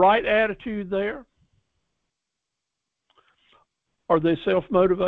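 An older man speaks calmly through an online call.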